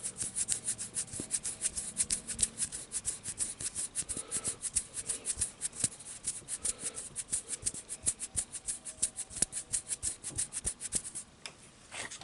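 Fingers tap and rub rapidly right up close to a microphone.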